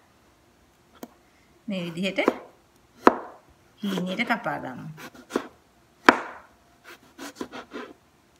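A knife taps against a cutting board as it slices through vegetables.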